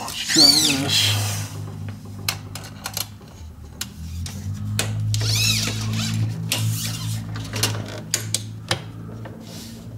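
A metal tape measure clicks and rattles.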